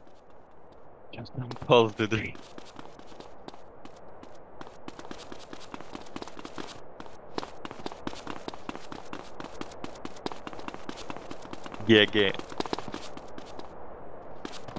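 Footsteps patter quickly as someone runs.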